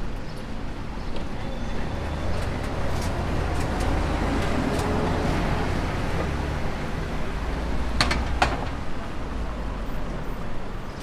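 A bus rumbles past close by and fades.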